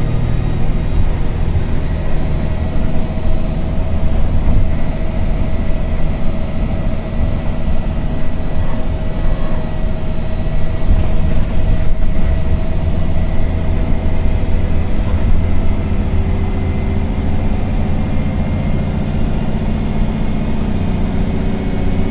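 A bus engine hums and rumbles steadily while driving.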